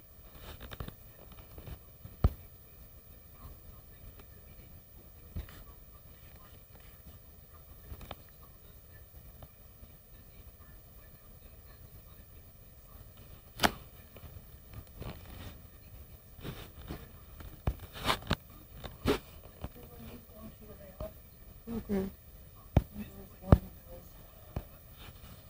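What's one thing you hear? Fingertips tap lightly on a touchscreen keyboard.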